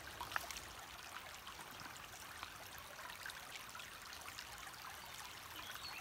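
Water splashes as a bottle is filled in a stream.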